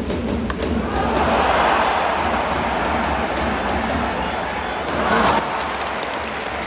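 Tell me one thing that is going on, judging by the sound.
A stadium crowd roars loudly, then quiets down.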